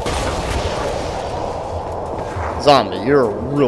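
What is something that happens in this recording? A magic staff blasts out a rushing, roaring gust of wind.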